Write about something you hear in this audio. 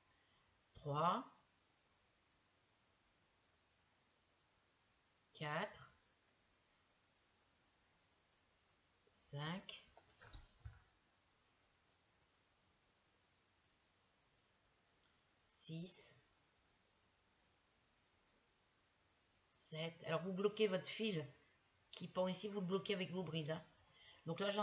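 An older woman speaks calmly and close by, in short phrases with long pauses.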